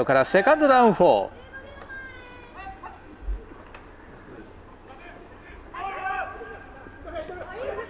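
Football players shout across an open field.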